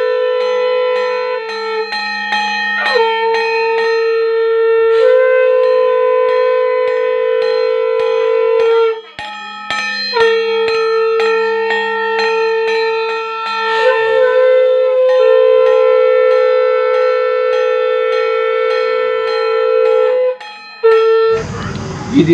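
A hand drum beats a quick, steady rhythm.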